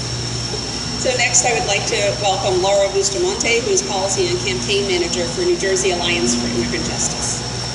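A woman speaks with feeling into a microphone outdoors.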